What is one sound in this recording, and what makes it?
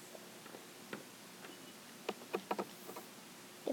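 A small plastic toy knocks lightly against a wooden table.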